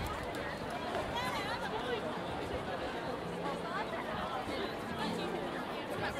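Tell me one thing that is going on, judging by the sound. A dense crowd of young women chatters outdoors.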